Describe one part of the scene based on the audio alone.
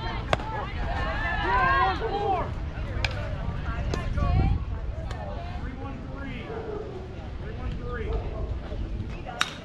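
Young girls cheer and chant loudly outdoors.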